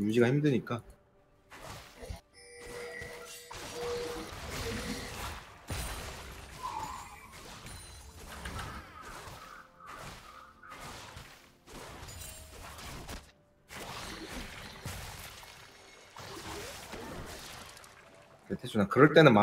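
Fantasy game battle sounds clash, whoosh and crackle.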